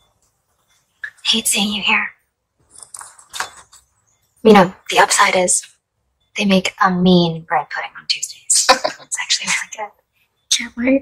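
A young woman speaks softly and wryly, close by.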